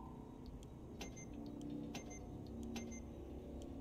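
Soft electronic menu blips sound a few times.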